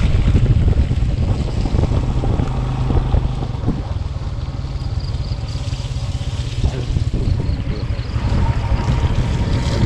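A motorbike engine rumbles steadily.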